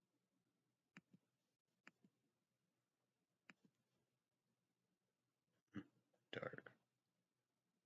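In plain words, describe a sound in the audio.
A young man speaks quietly and haltingly, close to a microphone.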